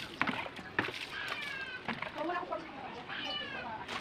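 Water splashes onto a scooter from a plastic scoop.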